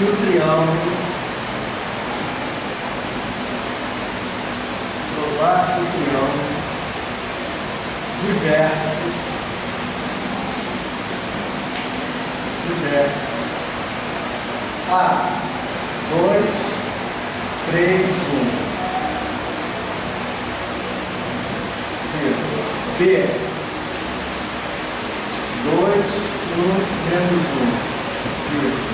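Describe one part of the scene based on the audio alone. A man speaks calmly in short phrases, in a room with some echo.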